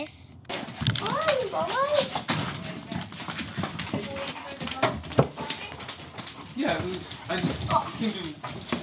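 A young girl talks and squeals excitedly.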